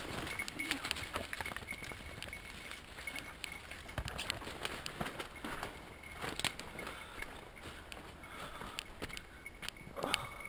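Footsteps crunch through dry leaves and snap twigs.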